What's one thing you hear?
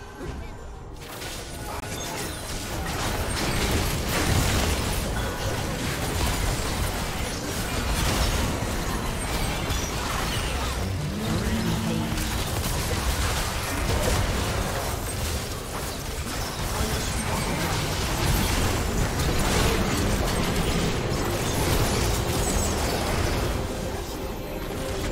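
Game spell effects burst and crackle in a fast fight.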